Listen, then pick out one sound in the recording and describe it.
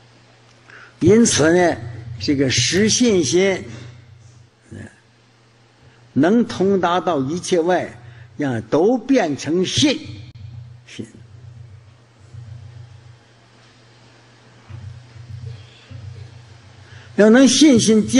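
An elderly man speaks calmly into a microphone, in bursts with long pauses.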